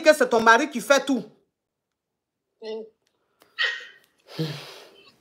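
A woman speaks close up with animation, in short bursts with pauses.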